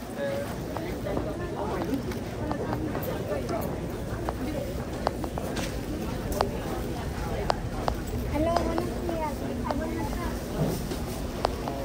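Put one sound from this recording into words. Men and women chatter nearby in a busy, echoing room.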